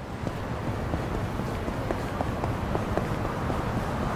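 Footsteps hurry along a pavement.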